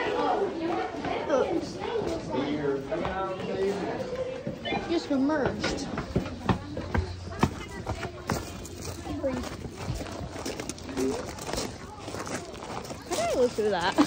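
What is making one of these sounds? Children talk excitedly nearby.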